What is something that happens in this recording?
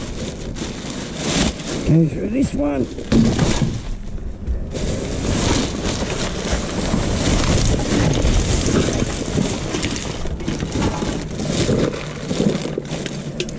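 A plastic bag rustles and crinkles as it is handled up close.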